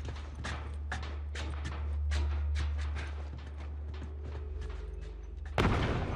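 Footsteps clank on metal stairs and then tread steadily on a hard surface.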